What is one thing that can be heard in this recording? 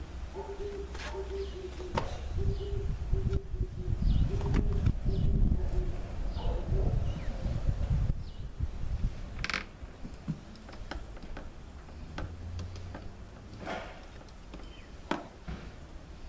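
A screwdriver clicks and taps against a plastic motor housing.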